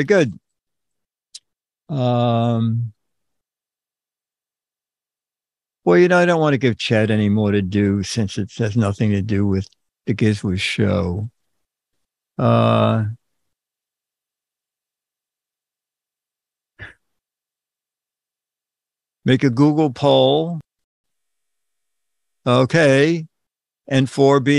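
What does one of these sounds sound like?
An elderly man talks into a close microphone in short bursts with pauses.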